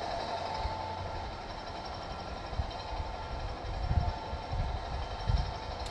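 Men talk quietly nearby outdoors.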